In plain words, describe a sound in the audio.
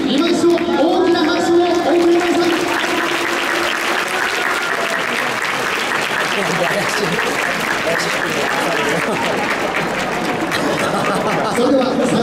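A large crowd murmurs and cheers in an open stadium.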